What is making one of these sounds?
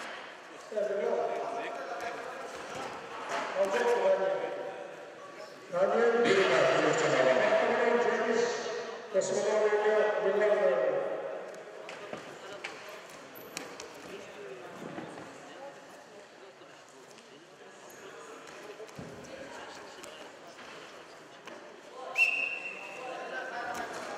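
A crowd of spectators shouts and cheers loudly in an echoing hall.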